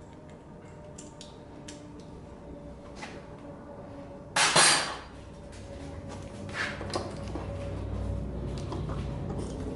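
Metal parts clink and tap as hands work on a motorcycle engine.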